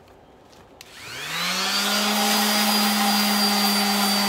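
A power sander starts up and whirs steadily against wood.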